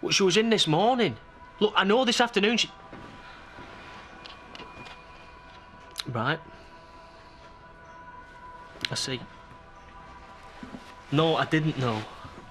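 A young man speaks calmly into a phone, close by, in short bursts with pauses.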